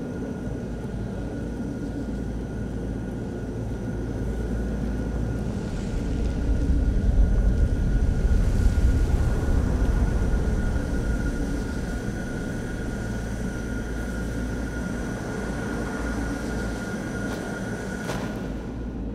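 Footsteps tread on stone and earth.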